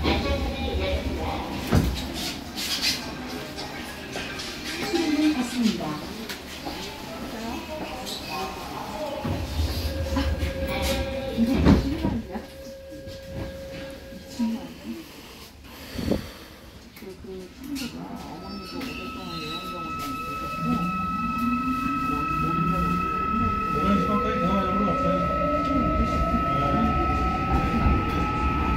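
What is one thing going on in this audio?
A subway train rumbles and rattles along the tracks.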